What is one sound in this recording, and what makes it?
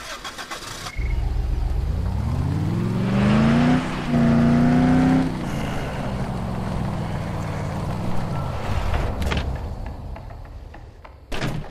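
A car engine revs up and hums steadily while driving.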